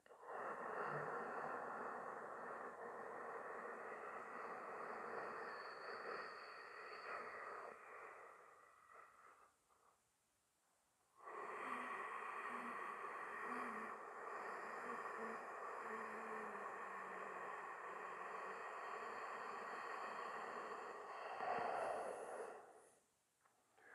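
A man breathes in and out slowly and deeply, close by.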